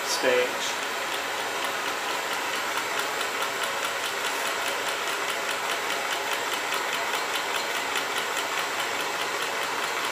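A small engine runs with a quick, steady ticking.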